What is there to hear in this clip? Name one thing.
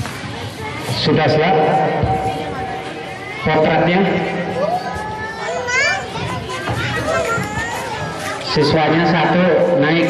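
A man speaks into a microphone, heard through a loudspeaker outdoors.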